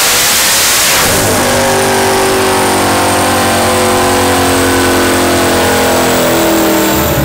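A car engine idles with a deep, steady burble.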